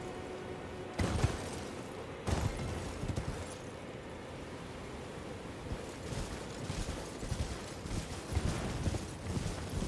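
Hooves thud on the ground as a horse gallops.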